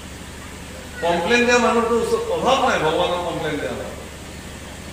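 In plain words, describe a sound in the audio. A man chants in a singing voice into a microphone, heard through a loudspeaker.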